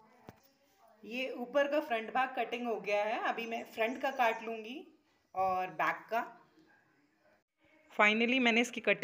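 A middle-aged woman speaks close by with animation.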